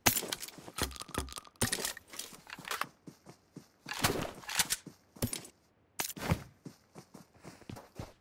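Items click as they are picked up.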